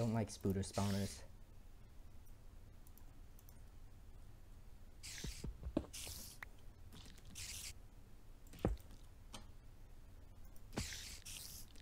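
Short soft clicks sound as items are moved around.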